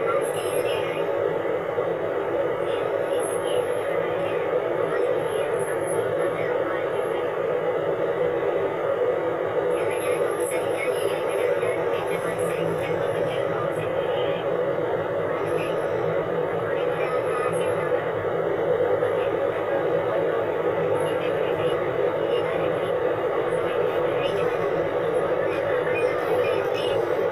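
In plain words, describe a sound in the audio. A car engine hums steadily while driving on a road.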